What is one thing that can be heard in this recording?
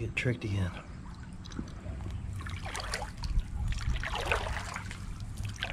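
A shallow stream trickles and babbles over stones close by.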